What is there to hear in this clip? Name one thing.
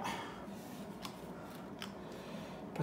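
A plastic keyboard part knocks and clicks lightly on a table.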